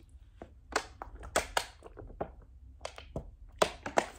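A young man gulps water from a plastic bottle.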